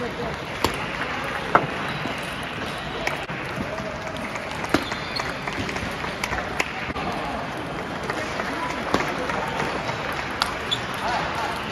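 A large hall echoes with a steady murmur of distant chatter and other games.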